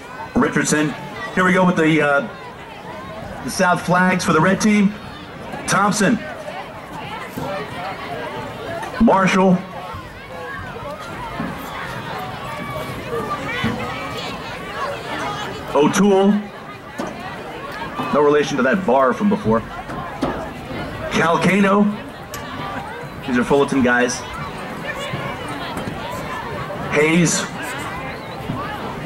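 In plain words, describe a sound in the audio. A crowd of people murmurs and chatters outdoors in the distance.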